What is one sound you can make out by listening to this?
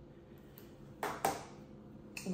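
A young woman claps her hands twice.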